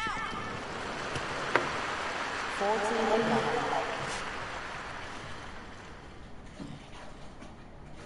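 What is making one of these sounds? A crowd applauds and cheers in a large stadium, then fades.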